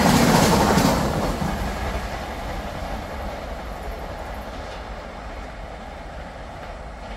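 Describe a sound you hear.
A train rumbles away into the distance and fades.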